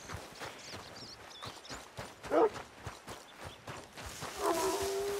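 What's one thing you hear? Footsteps crunch steadily through grass and brush.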